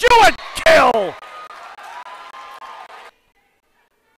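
A crowd cheers and claps in a large hall.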